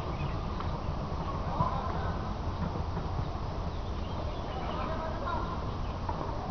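Distant men call out across an open field.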